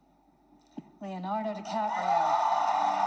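A woman announces through a microphone.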